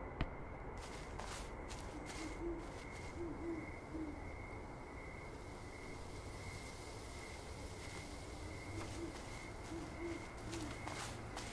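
Footsteps crunch slowly over snowy ground.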